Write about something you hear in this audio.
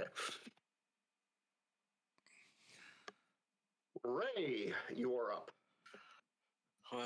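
An elderly man speaks calmly into a headset microphone, heard as over an online call.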